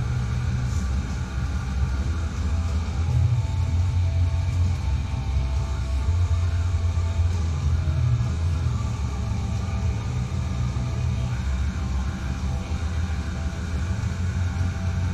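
Fast electronic dance music plays with a heavy, steady bass beat.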